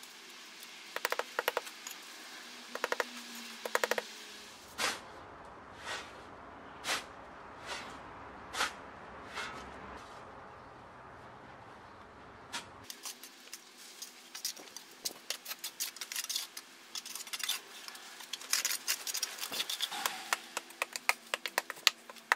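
A mallet taps rapidly on bricks.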